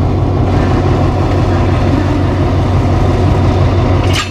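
A train carriage rolls slowly past on the rails.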